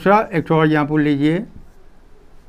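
An elderly man speaks loudly and clearly.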